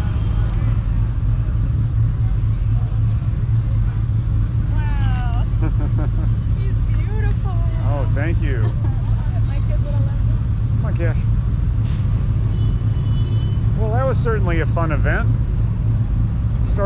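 Wind rumbles steadily against the microphone outdoors.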